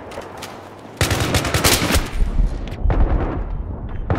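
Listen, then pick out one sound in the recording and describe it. Gunshots crack in rapid bursts close by.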